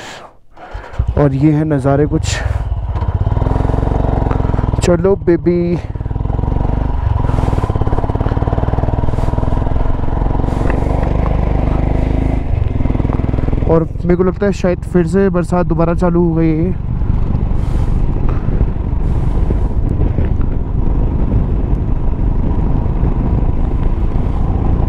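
A motorcycle engine rumbles steadily as it rides along.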